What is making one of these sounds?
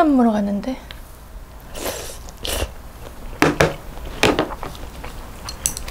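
A young woman chews and slurps food up close.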